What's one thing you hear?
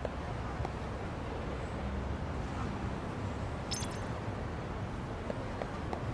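Footsteps walk along pavement.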